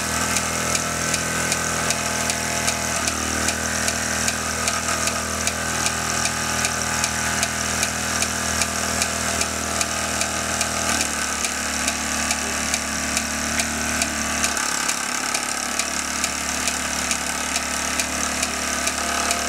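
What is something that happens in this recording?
Belts and pulleys on a model lineshaft whirr and rattle.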